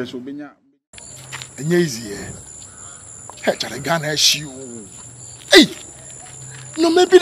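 A man talks on a phone outdoors, loudly and cheerfully.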